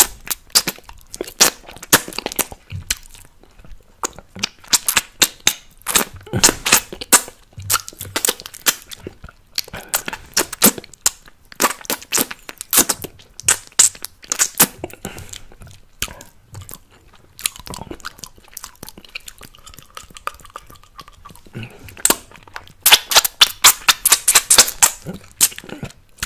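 A man makes wet, sticky mouth and lip sounds up close to a microphone.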